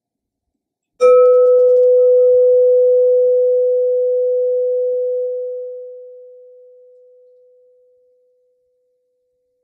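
A singing bowl is struck and rings with a long, steady tone that slowly fades.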